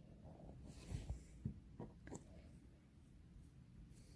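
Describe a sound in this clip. A small plastic tube clicks against a wooden tabletop.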